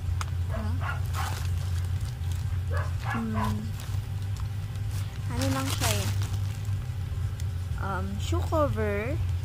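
A plastic mailing bag crinkles and rustles.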